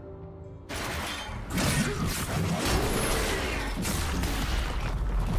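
Video game combat effects crash and whoosh as fighters strike a large monster.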